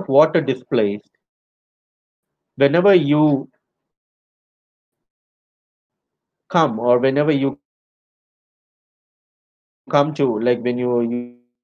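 A man speaks calmly through a microphone in short phrases with pauses.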